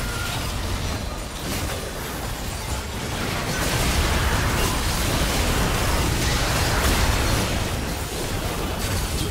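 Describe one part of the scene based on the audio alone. Spell effects and battle sounds clash and burst in a game fight.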